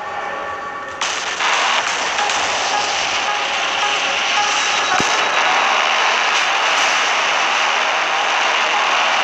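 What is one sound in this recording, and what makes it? Ship cannons fire in loud booming blasts.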